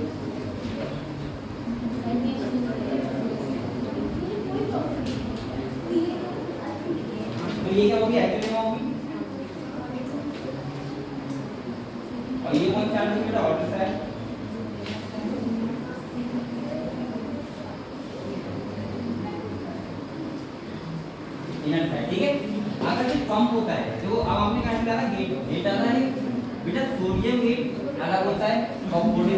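A young man speaks steadily and calmly.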